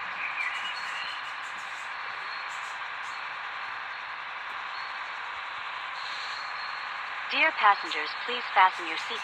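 A bus engine hums steadily as the bus drives slowly.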